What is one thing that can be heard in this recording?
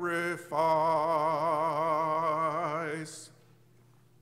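An elderly man sings a held note with vibrato through a microphone in a large hall.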